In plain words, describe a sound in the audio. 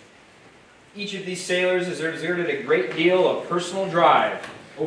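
A man speaks formally into a microphone over loudspeakers in a large room.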